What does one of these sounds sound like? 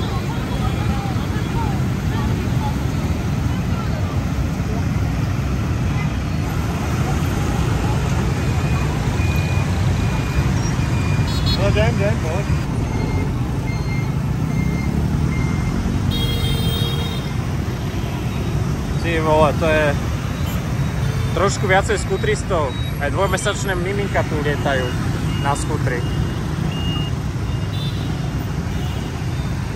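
Many motorbike engines hum and rumble steadily all around.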